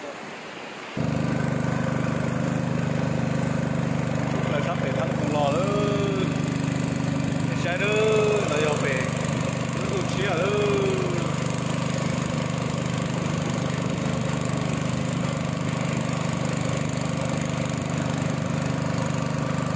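A boat engine hums steadily and loudly.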